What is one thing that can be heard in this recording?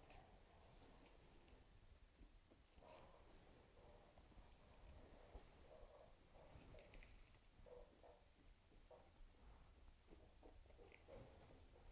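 Feathers rustle softly under gloved fingers.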